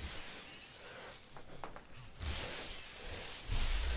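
A figure shatters with a sharp crash as a knife strikes it.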